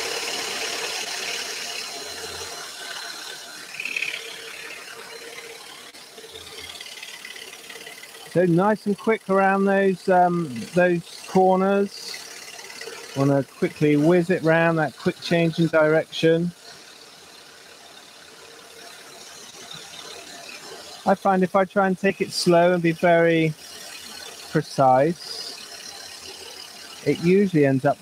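A scroll saw buzzes steadily as it cuts through thin wood.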